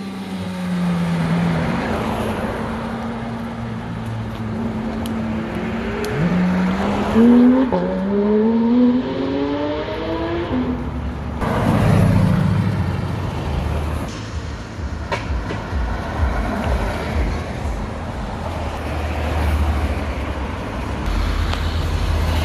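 Tyres hiss on the road as cars pass.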